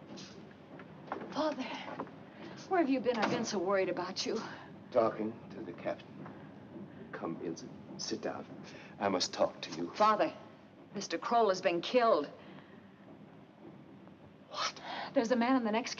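A woman speaks urgently and emotionally, close by.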